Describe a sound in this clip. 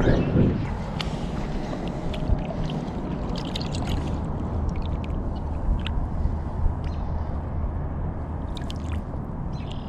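Water splashes and sloshes as a fish is lowered into a pond.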